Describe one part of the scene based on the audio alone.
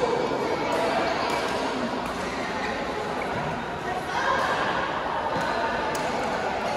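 Many people chatter and call out in a large echoing hall.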